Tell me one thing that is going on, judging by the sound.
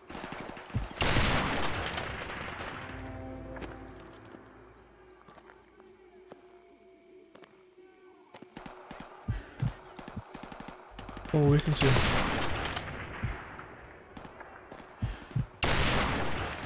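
A rifle fires loud single shots that echo and roll away.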